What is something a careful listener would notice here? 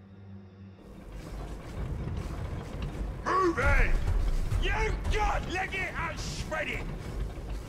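Weapons fire and explosions rumble in a noisy battle.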